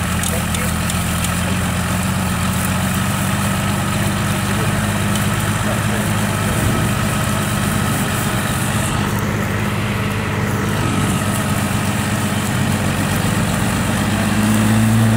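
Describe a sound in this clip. An engine roars steadily, straining under load.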